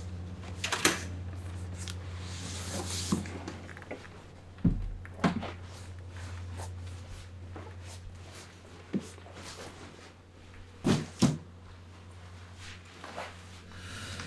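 Footsteps and knocks sound as a man moves about.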